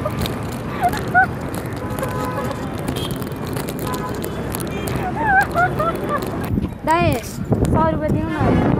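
Motorcycles and traffic rumble past on a busy street.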